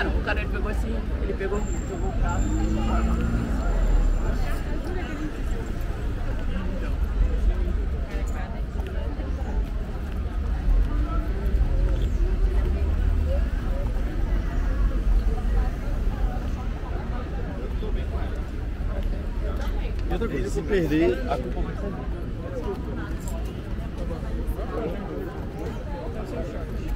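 A crowd of men and women chatter nearby, outdoors.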